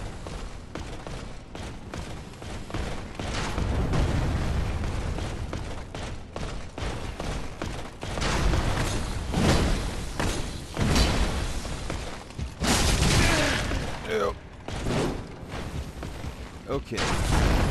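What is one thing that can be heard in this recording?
Footsteps run across a hard stone floor.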